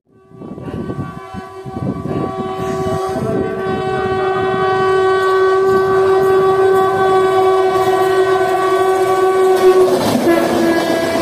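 A locomotive horn blows long and loud as a train approaches.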